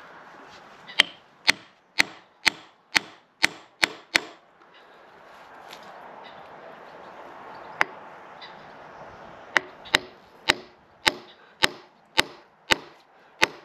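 A metal hammer strikes a steel wedge in a wooden log with sharp, ringing blows.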